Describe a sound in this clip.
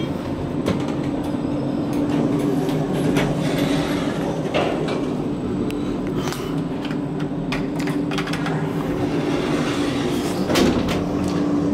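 Elevator doors slide open and shut.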